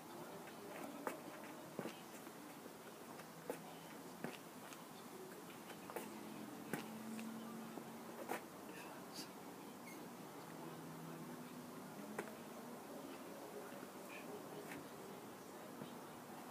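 Trainers scuff and stamp on paving slabs outdoors.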